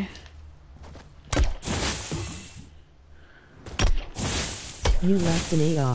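A pickaxe strikes hay bales with dull thuds.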